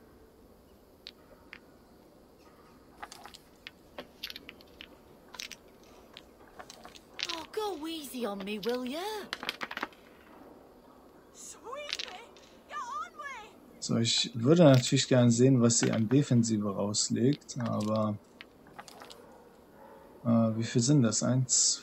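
Dice click softly as they are picked up and set down on a table.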